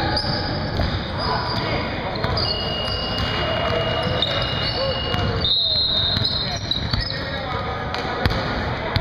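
Sneakers squeak on a wooden court in a large echoing hall.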